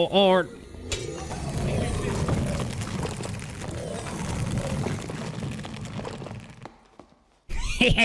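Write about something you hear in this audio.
A magic blast roars and crackles.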